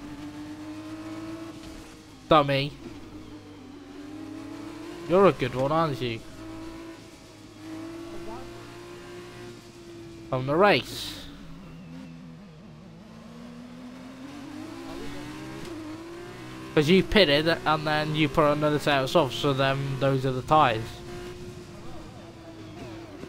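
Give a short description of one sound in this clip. A racing car engine hums steadily at low speed.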